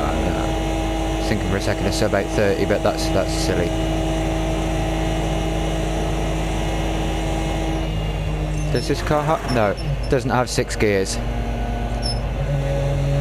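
A racing car engine roars at a steady pitch, then drops lower as the car slows.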